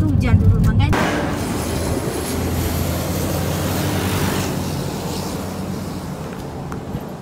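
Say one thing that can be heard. A truck roars past on the road and fades.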